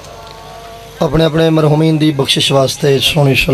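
A man speaks loudly and with emotion through a microphone and loudspeakers, heard outdoors.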